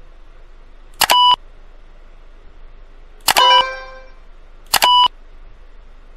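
Short electronic beeps sound three times.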